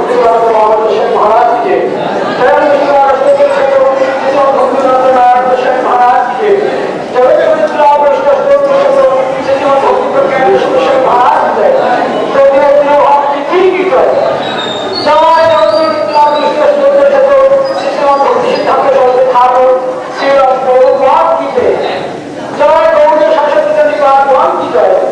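A crowd of men and women chants together in a sung melody.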